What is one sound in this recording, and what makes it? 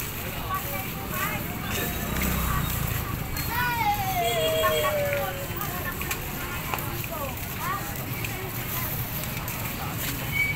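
Children talk casually nearby.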